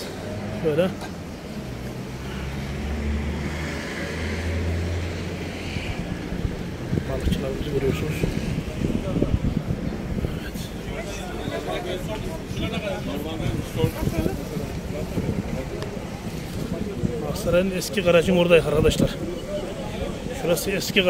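Traffic hums along a busy street outdoors.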